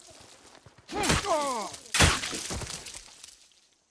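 A man grunts in pain.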